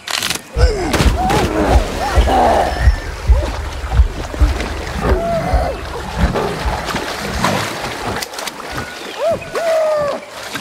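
A monkey screeches with rising and falling calls.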